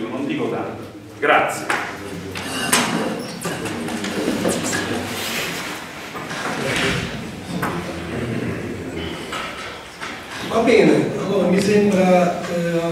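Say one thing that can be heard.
A man speaks steadily through a microphone in an echoing hall.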